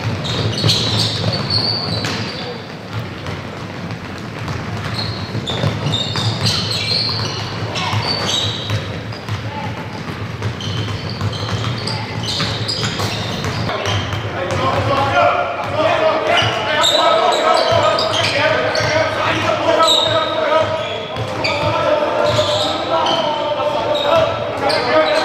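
Basketballs bounce on a hard floor in a large echoing hall.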